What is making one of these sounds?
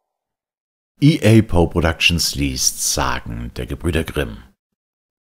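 A man reads out clearly close to a microphone.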